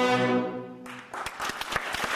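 An orchestra plays a held chord in a large echoing hall.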